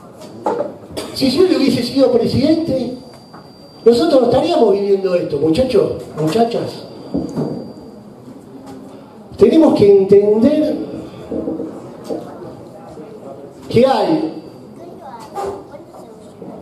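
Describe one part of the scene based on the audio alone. A man speaks passionately into a microphone, amplified in a large room.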